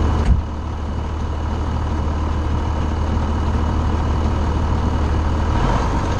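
A tractor engine rumbles steadily up close.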